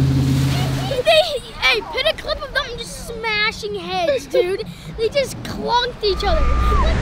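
A young boy talks with animation, close by.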